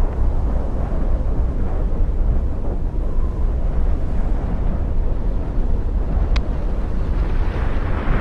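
A volcanic eruption roars with a deep, steady rumble.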